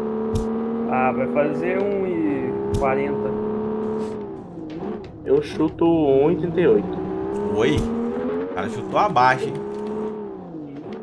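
Tyres screech in short bursts as a car drifts around corners.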